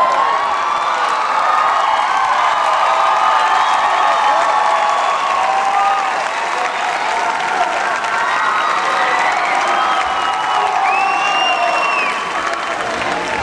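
A large crowd of young people cheers and shouts in a large echoing hall.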